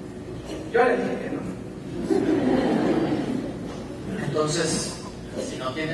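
A man speaks with expression on a stage, heard from a distance in a large hall.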